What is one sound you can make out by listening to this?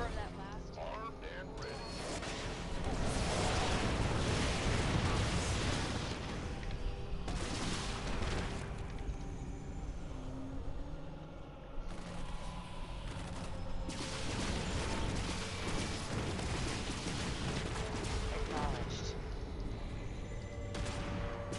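Gunfire and explosions crackle in a battle.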